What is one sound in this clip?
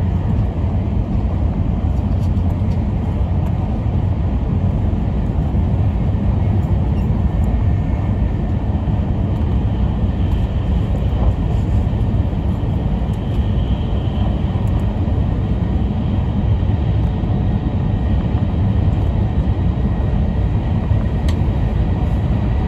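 A fast train rumbles steadily along the tracks, heard from inside a carriage.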